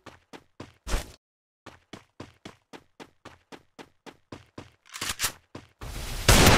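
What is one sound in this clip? Quick footsteps patter steadily on a hard surface.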